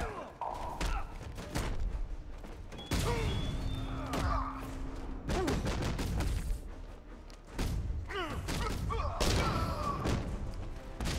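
Men grunt and groan as they are struck.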